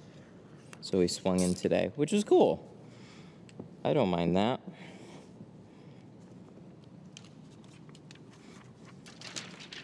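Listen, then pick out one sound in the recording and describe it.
A sheet of plastic film crinkles and rustles as a hand handles it.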